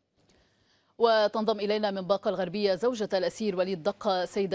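A young woman reads out calmly and clearly, close to a microphone.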